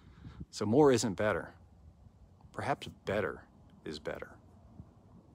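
A man speaks calmly and close up, in short phrases with pauses.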